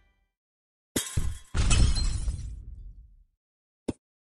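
Blocks in a puzzle game burst with a loud crashing sound effect.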